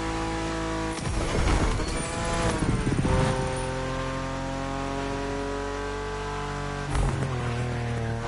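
A car exhaust pops and crackles.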